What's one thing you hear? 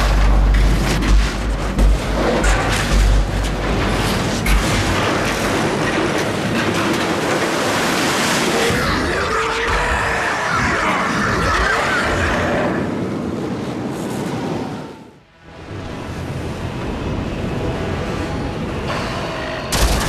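A sandstorm roars with strong wind.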